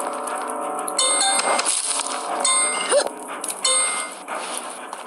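Bright chiming sounds ring out as gems are collected.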